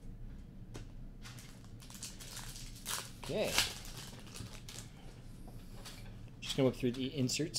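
Cards rustle and click as they are handled.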